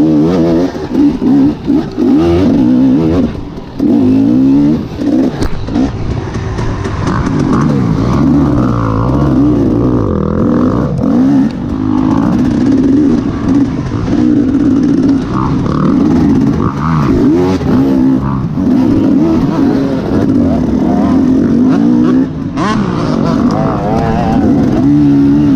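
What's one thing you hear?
A dirt bike engine revs and roars up close, rising and falling in pitch.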